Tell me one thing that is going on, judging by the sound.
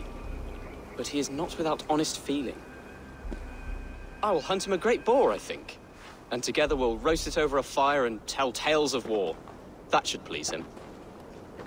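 A young man speaks calmly and thoughtfully up close.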